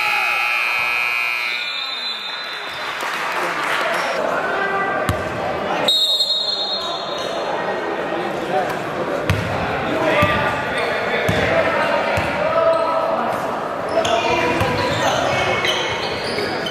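Young players and spectators call out and chatter in an echoing hall.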